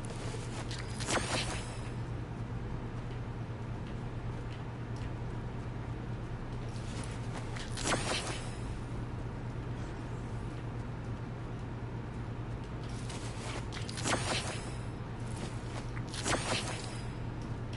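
A short bright chime sounds as an item is picked up.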